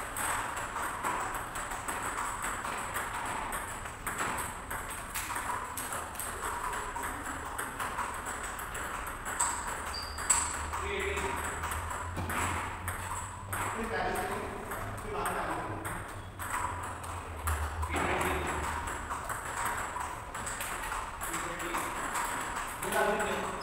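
Ping-pong balls click sharply against paddles and tables in quick rallies.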